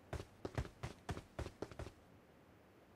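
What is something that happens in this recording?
Footsteps tap quickly on a hard roof.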